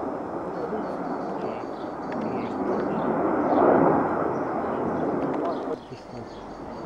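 Jet planes roar overhead, swelling and fading.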